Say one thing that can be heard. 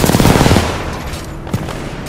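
An explosion booms and echoes.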